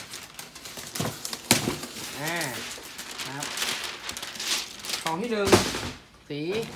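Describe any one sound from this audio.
A cardboard box scrapes and thumps as it is moved.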